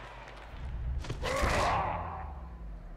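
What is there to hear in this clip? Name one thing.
A heavy body slams into another with a thud.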